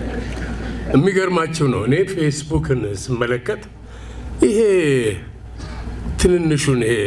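An elderly man speaks slowly and deliberately through a microphone.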